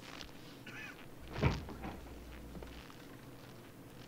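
A door opens with a knock.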